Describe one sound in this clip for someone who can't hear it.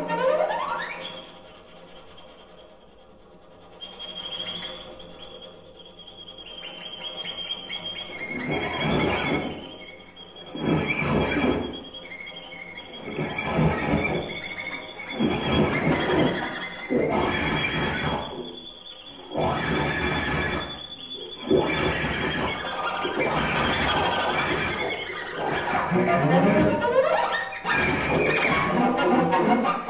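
A cello plays bowed notes that swell and fade.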